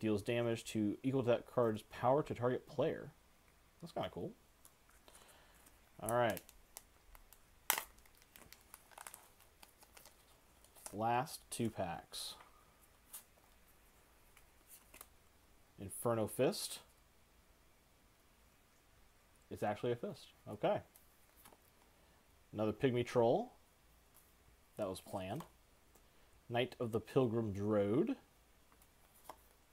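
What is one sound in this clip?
Playing cards rustle and slide against each other as they are handled.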